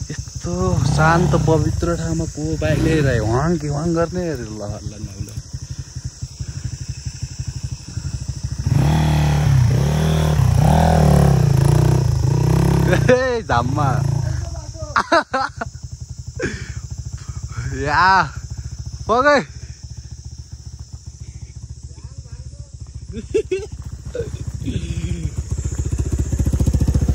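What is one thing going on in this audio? A motorcycle engine revs and labours as the bike climbs.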